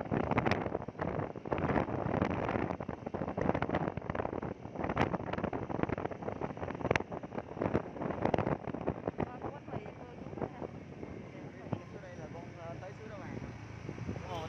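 Wind rushes loudly past from a moving motorbike.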